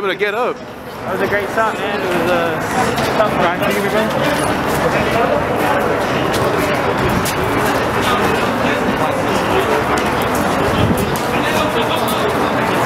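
A crowd of people chatters in an echoing hall.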